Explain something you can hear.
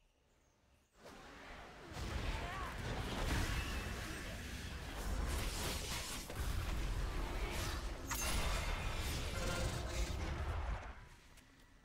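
Magic spells crackle and boom in a loud battle.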